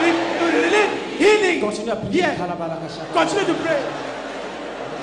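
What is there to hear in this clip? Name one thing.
A man shouts excitedly through a microphone in a large echoing hall.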